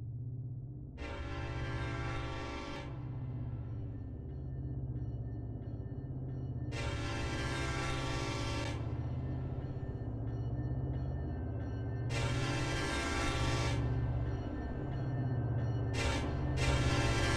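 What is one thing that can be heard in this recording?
A train horn blows in long loud blasts.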